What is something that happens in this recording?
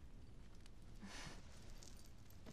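Clothing rustles as a woman stands up.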